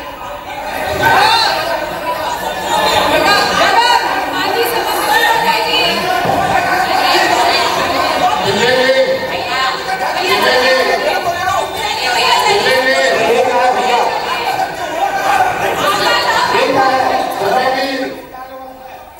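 A crowd of men shout and argue loudly in a room.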